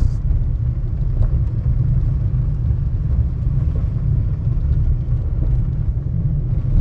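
Gravel crunches and rattles under tyres.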